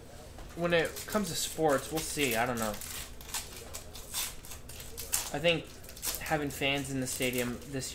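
Foil packs crinkle as they are torn open.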